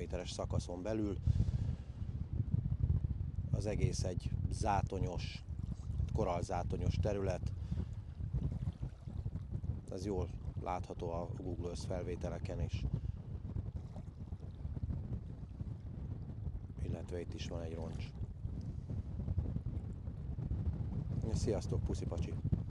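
Wind blows steadily across open water outdoors.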